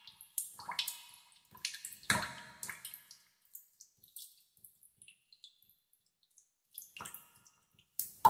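Water drops plink and splash into still water.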